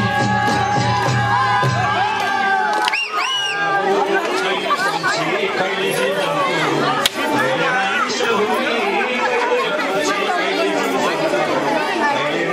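A crowd of men and women sing and cheer loudly together.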